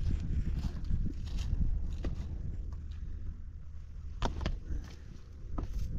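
Footsteps crunch on loose stones outdoors.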